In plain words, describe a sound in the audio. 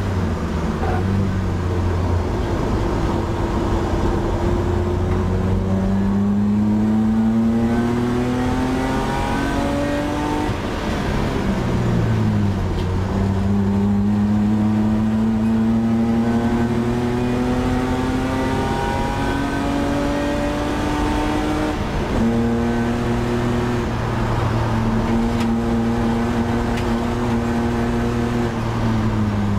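A race car engine roars loudly from inside the cabin, revving up and dropping between gear changes.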